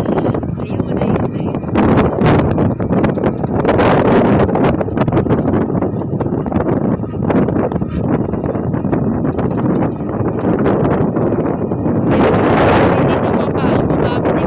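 Strong wind blows outdoors, rumbling and buffeting against the microphone.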